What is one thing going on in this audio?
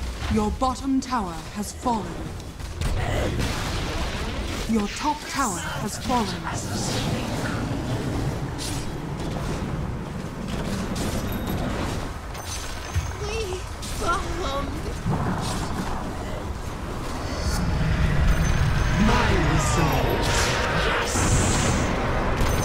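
Fantasy battle sound effects of magic spells and weapon clashes play in a video game.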